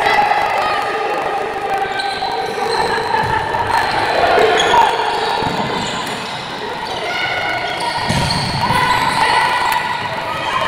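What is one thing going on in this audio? Sneakers squeak on a hard indoor court, echoing in a large hall.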